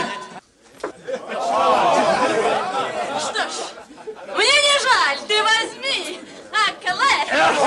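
A young woman speaks teasingly.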